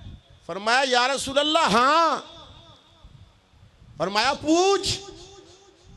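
A man speaks loudly and with fervour into a microphone, heard through a loudspeaker.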